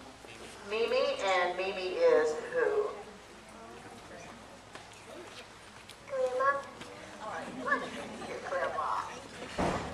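A woman speaks cheerfully into a microphone close by.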